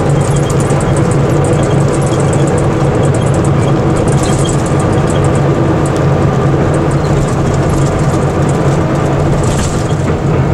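A bus engine drones steadily with a low hum.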